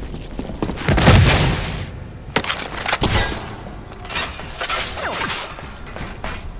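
A gun fires loud blasts in short bursts.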